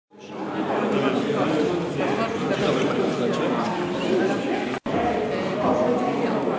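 Several adult men and women chatter at once nearby, in a murmur of overlapping voices.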